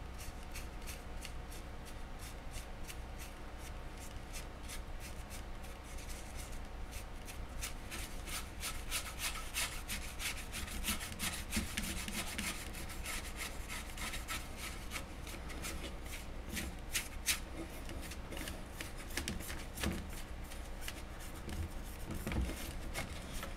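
A paintbrush dabs and scratches against a hard surface in quick strokes.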